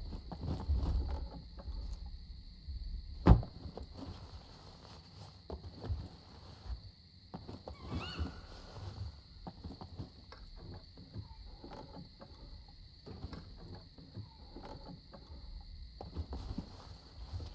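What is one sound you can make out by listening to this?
Footsteps thud on metal grating.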